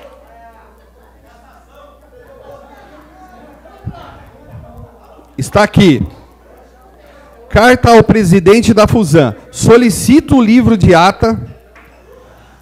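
A middle-aged man reads aloud into a microphone, his voice loud and echoing in a hall.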